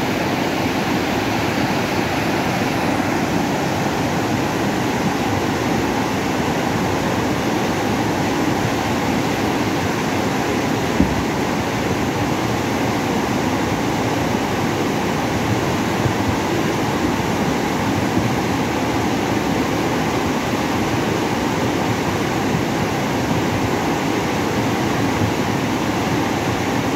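A muddy river in flood rushes and roars loudly close by.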